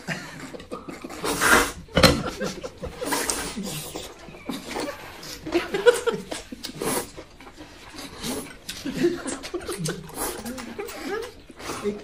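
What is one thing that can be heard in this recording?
A man slurps noodles loudly close by.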